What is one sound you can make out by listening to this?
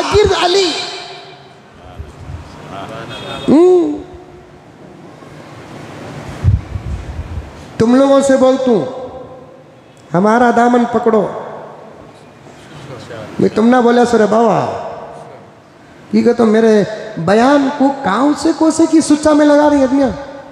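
An elderly man preaches with animation through a microphone, his voice rising into long chanted phrases and echoing in a large hall.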